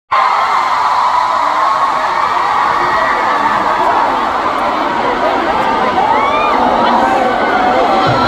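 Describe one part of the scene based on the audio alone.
A man sings through loudspeakers.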